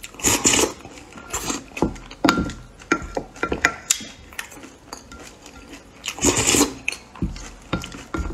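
A woman slurps and chews soft food loudly, close to a microphone.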